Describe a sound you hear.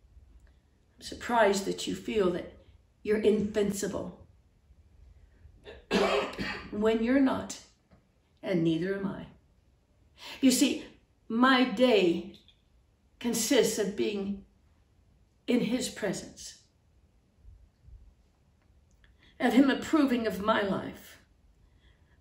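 A middle-aged woman speaks calmly and emotionally, close to the microphone, with pauses.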